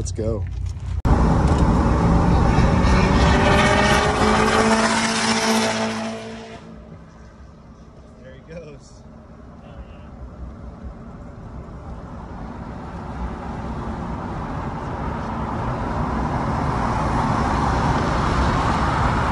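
Tyres hum on the road at speed and grow louder.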